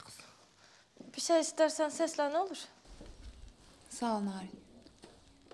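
A young woman speaks up brightly from across a room.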